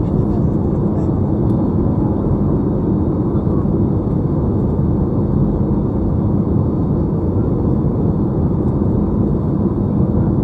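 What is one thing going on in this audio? A jet engine roars steadily in flight, heard from inside the cabin.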